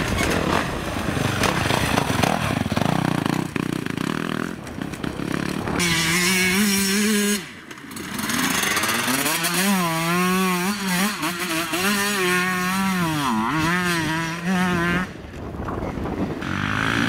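A dirt bike engine revs loudly, its pitch rising and falling.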